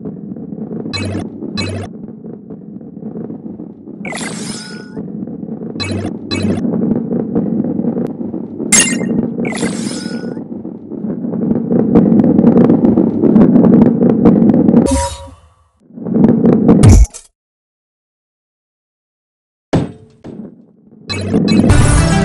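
Bright chimes ring out as coins are collected.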